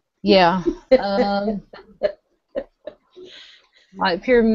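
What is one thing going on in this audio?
A woman laughs through an online call.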